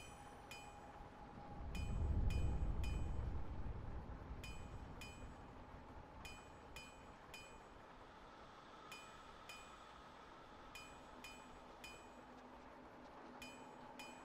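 Soft bright chimes tick again and again in an uneven rhythm.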